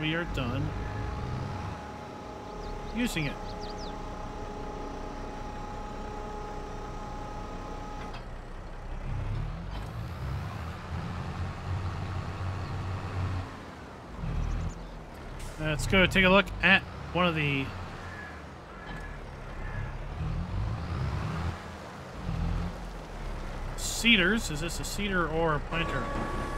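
A tractor engine hums and rumbles steadily.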